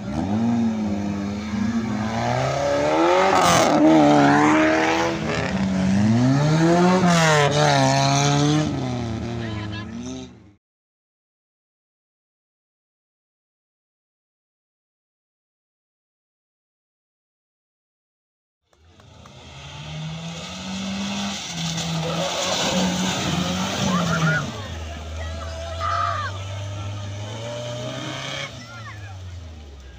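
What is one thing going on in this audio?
A car engine roars and revs hard as it churns through mud.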